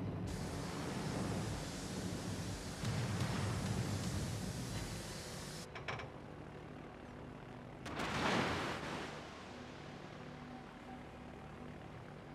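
Propeller aircraft engines drone steadily.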